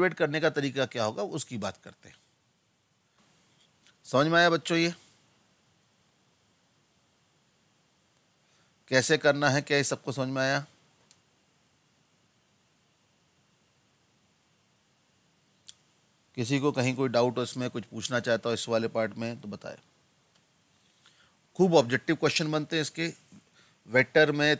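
A man speaks calmly into a close microphone, in bursts with pauses.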